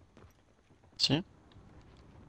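A rifle fires a single sharp shot.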